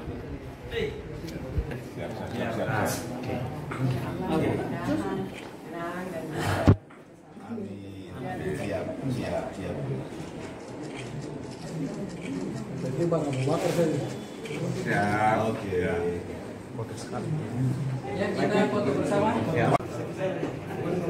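Several men and women talk and murmur nearby.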